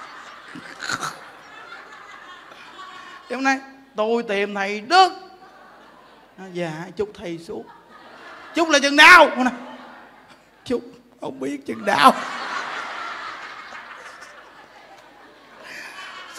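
A man laughs heartily into a microphone.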